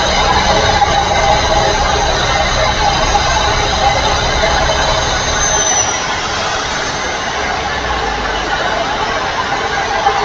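A truck engine hums steadily while driving on a highway.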